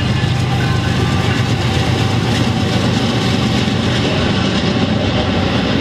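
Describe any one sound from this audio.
Locomotive engines drone as they pass.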